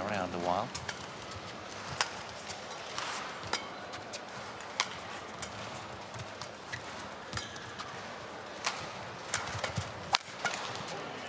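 Shuttlecock hits from rackets crack back and forth in a rally.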